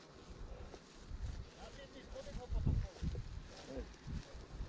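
Footsteps thud on grass close by.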